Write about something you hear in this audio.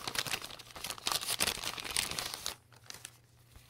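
A plastic bag crinkles loudly as hands open it.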